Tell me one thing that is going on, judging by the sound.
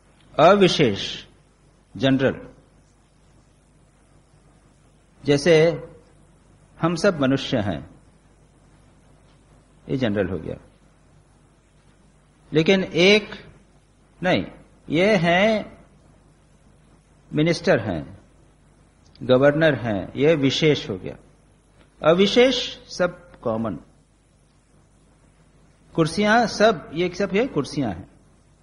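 A man speaks calmly and steadily into a microphone, with short pauses.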